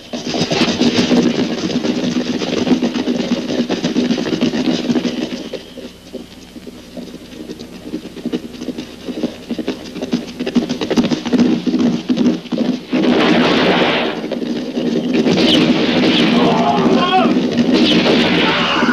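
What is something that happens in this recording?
Horses' hooves gallop over grass.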